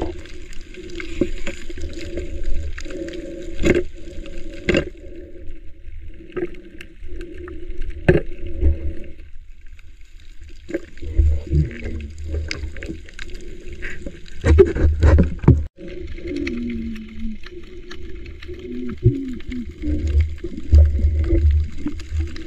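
Muffled water rumbles and gurgles underwater.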